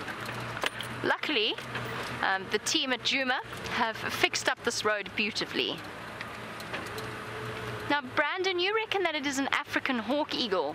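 A young woman talks calmly nearby.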